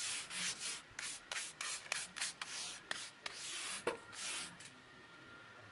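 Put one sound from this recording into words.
A stiff brush scrubs quickly over rough paving stones.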